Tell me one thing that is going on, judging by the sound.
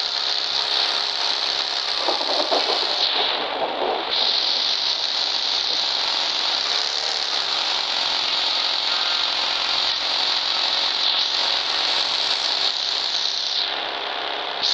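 A buggy engine drones as the vehicle drives over grass and road.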